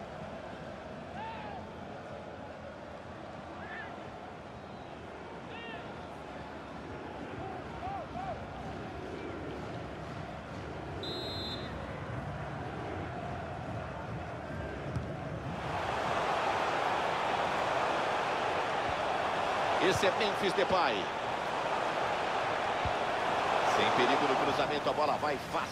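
A large stadium crowd cheers and chants steadily, swelling louder partway through.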